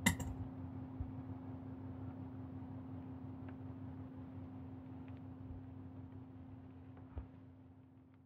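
A hand knocks lightly against a metal bowl.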